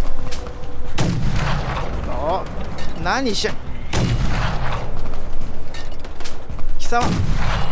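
Loud blasts boom and crash.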